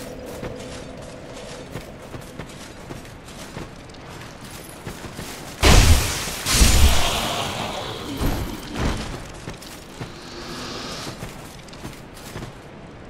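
Footsteps crunch steadily on rough stone ground.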